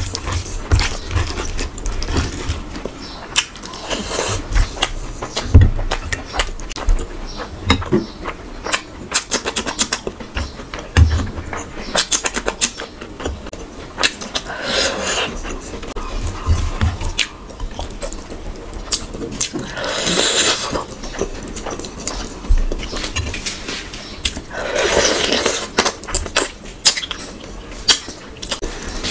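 A young woman chews food loudly and smacks her lips close to a microphone.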